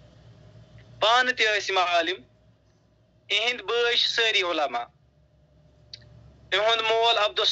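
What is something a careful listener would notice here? A man speaks into a microphone in short, measured phrases.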